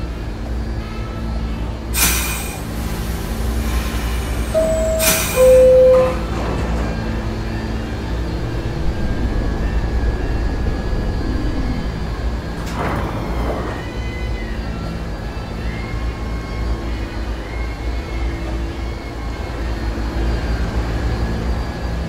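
A subway train rumbles steadily with a low hum.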